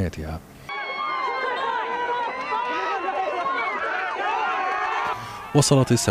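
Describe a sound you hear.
A large crowd cheers and whoops outdoors.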